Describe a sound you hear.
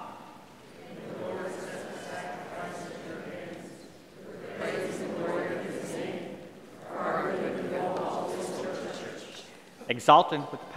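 A large congregation responds together in a low, unison murmur.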